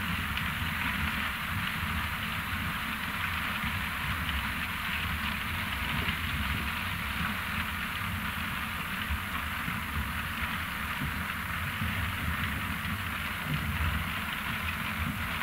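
Beets rattle and tumble along a conveyor.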